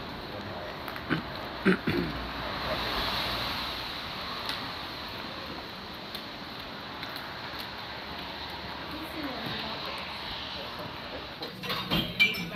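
Footsteps and trekking poles tap on a wet paved street.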